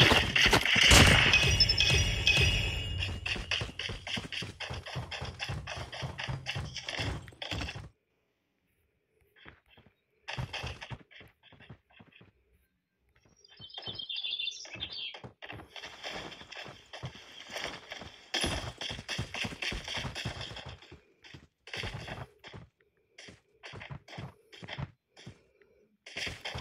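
Footsteps thud quickly as a game character runs.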